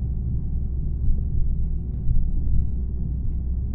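Tyres rumble and thump over a rough road surface.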